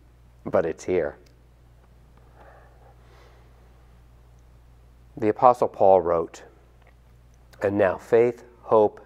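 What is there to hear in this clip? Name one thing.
A middle-aged man speaks calmly and warmly into a close microphone, with pauses.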